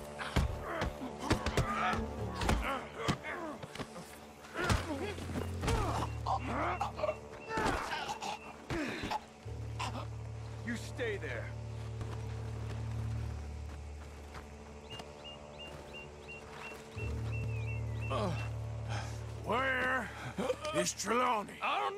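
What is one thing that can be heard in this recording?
A man grunts and groans while fighting.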